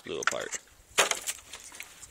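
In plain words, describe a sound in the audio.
A plastic bucket knocks once.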